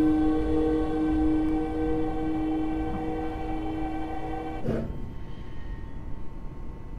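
Train wheels rumble low on the rails.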